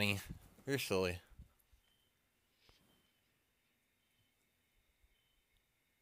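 A hand rustles a soft blanket.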